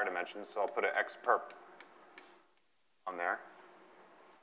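A man lectures through a microphone in a room with a slight echo.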